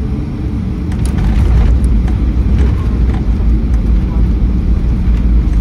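An airliner's wheels thump onto the runway and rumble.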